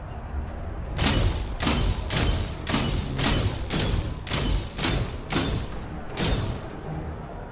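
Magic spells burst and crackle in quick blasts.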